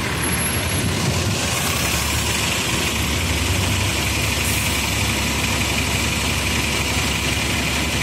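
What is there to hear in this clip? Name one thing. A double-decker bus engine idles nearby.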